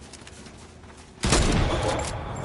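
A rifle shot rings out.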